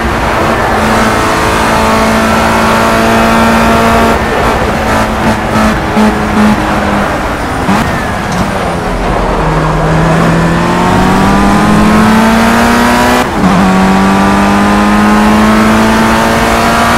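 A racing car engine whines loudly at high revs, dropping in pitch on braking and rising again as it speeds up.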